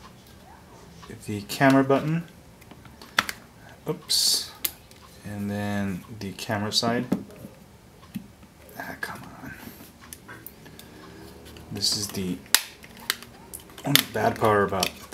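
A plastic phone case clicks and snaps under fingers.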